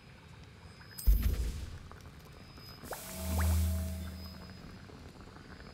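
Ingredients drop into a cauldron with a soft whoosh.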